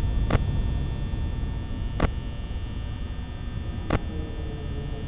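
Sharp electronic clicks sound a few times.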